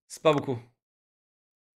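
A man speaks briefly and with animation into a close microphone.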